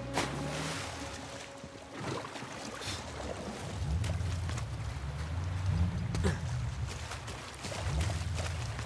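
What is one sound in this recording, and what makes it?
A man splashes through shallow water.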